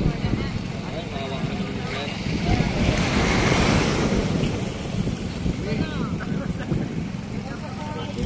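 Water splashes around a man wading beside a boat.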